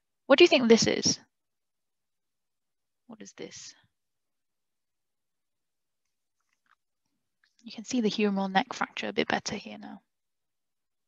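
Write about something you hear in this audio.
A young woman speaks calmly over an online call, in short bursts with pauses.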